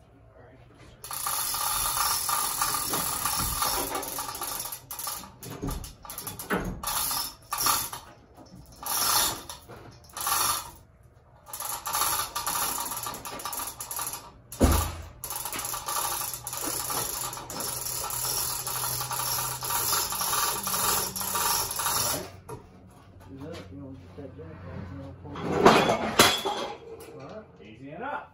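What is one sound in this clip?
A chain hoist rattles.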